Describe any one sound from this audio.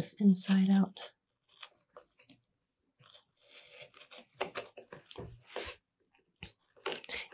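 A knife shaves and scrapes small curls from wood.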